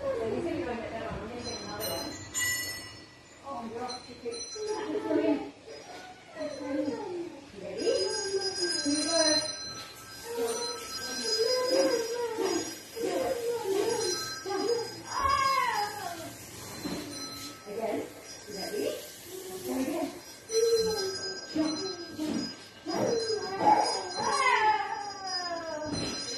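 A trampoline creaks as a child bounces on it.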